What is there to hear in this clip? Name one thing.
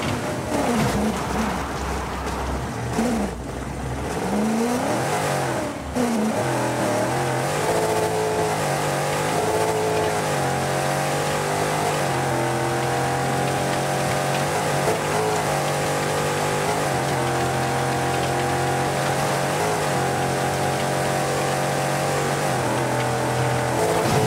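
Tyres crunch and rumble over loose gravel.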